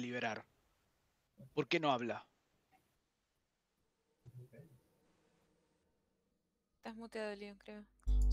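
A man talks over an online call.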